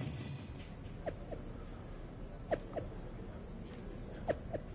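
A phone chimes with short message alerts.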